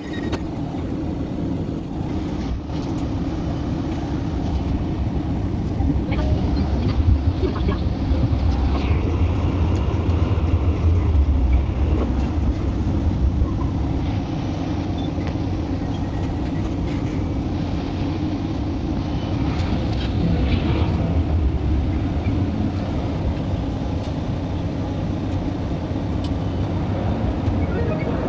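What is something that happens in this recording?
A tram rumbles and hums steadily along its rails, heard from inside.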